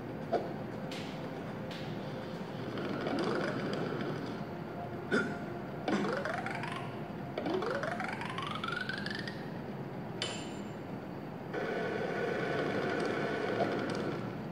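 Game music and sound effects play through a small phone speaker.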